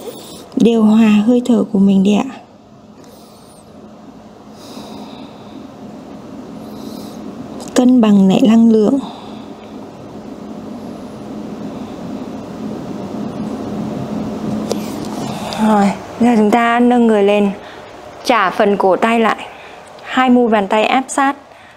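A young woman speaks calmly and gently, close to a microphone.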